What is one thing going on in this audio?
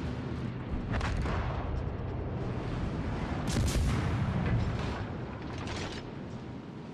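Naval guns fire with loud booming blasts.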